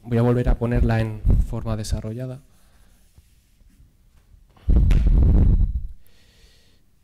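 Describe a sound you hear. A man rubs a chalkboard with quick erasing strokes.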